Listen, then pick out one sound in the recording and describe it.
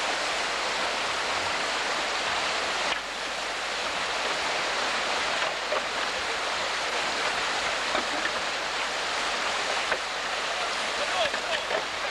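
Paddles splash in the water.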